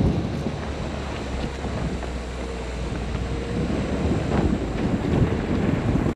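A vehicle engine rumbles as it drives slowly over a bumpy dirt track.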